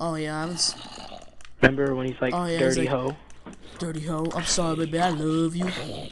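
A zombie groans.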